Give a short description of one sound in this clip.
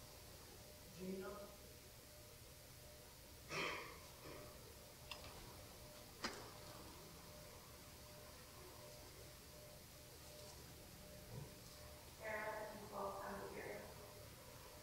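An elderly man speaks slowly into a microphone in an echoing room, with long pauses.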